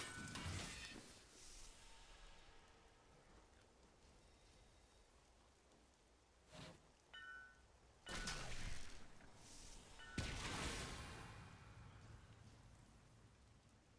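Fiery spell blasts burst and whoosh in a game.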